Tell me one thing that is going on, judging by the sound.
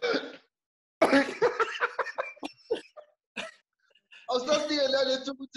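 Several men laugh loudly over an online call.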